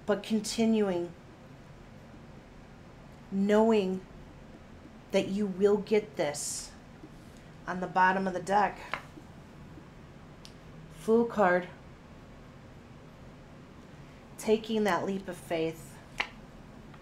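A woman speaks calmly and expressively in short phrases, close to a microphone.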